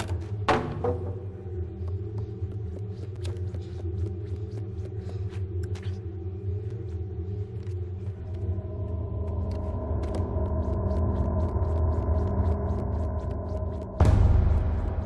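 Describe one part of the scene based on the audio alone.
Small quick footsteps patter across wooden floorboards.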